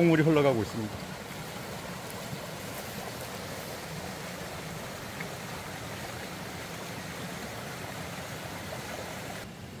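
Water trickles steadily along a small stream.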